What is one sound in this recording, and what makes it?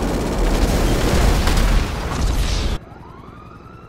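A jet crashes with a loud explosion.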